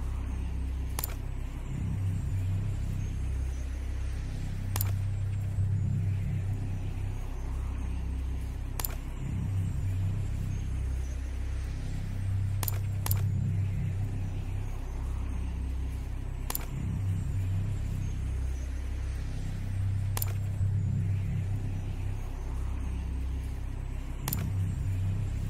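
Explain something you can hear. Short sharp menu clicks sound every few seconds.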